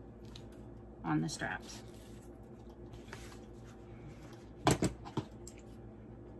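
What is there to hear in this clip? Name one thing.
Stiff straps rustle and slap as they are handled.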